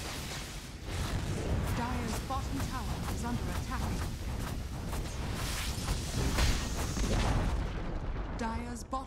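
Magic spells whoosh and blast in a fantasy game battle.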